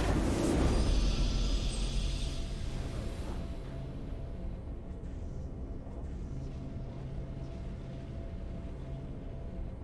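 A triumphant game fanfare swells and then fades.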